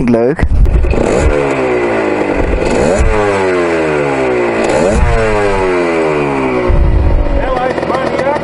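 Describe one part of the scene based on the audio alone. A motorcycle engine revs up again and again.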